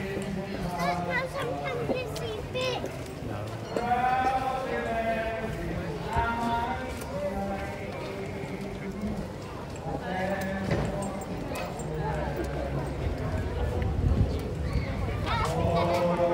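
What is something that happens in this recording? Adults talk nearby outdoors.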